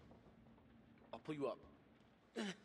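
A man's voice speaks briefly in a game.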